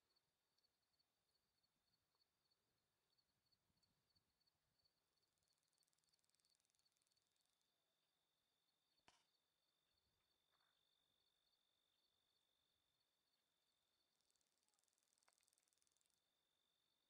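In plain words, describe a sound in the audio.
A horse's hooves thud softly on dry ground.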